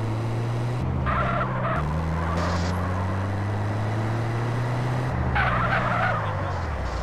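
Tyres screech on a road in short bursts.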